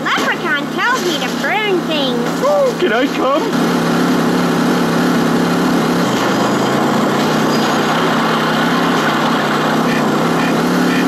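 A video game car engine drones.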